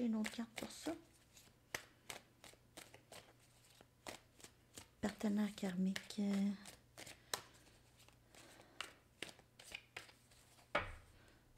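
A deck of tarot cards is shuffled in the hands with light, quick clicks.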